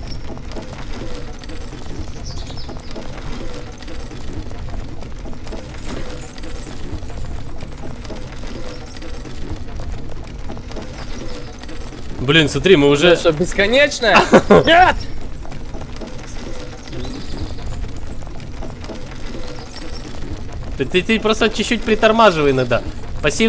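A heavy chain rattles and drags.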